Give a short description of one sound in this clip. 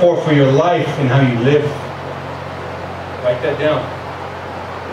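A man speaks calmly through a microphone and loudspeakers.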